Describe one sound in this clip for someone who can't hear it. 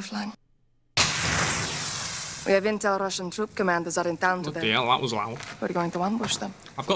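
A flare hisses and crackles as it burns close by.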